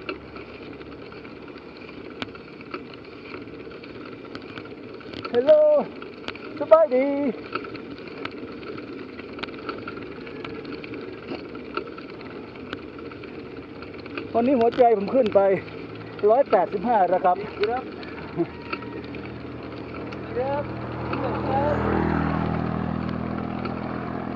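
Wind rushes past a moving bicycle.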